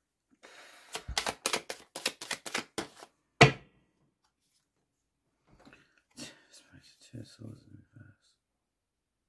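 Playing cards riffle and slap onto a table.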